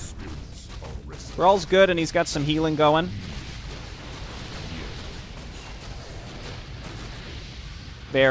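Fire spells crackle and burst amid clashing combat.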